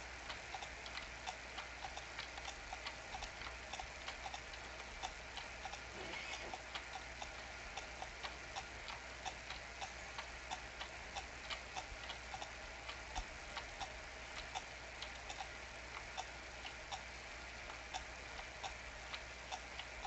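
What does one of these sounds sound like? Hooves gallop in a quick, steady rhythm.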